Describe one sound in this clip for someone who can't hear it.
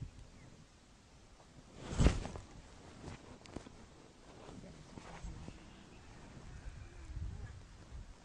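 Hands rub and crumble dry soil.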